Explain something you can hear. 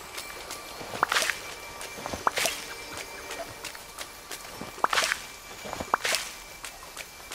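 Leaves rustle in short swishes as fruit is picked.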